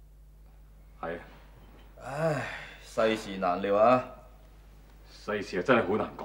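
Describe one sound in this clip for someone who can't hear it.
A man speaks calmly and seriously, close by.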